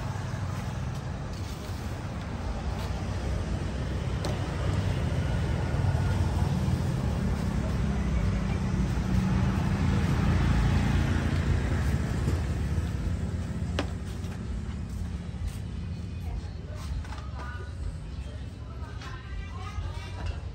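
A broom sweeps across a hard floor.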